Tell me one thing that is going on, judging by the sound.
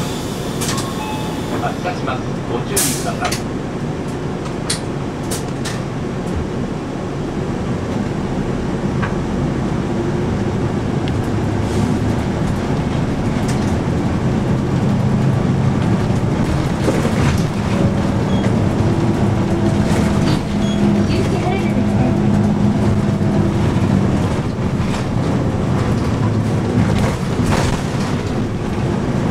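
The bus body rattles and clicks as it drives along the road.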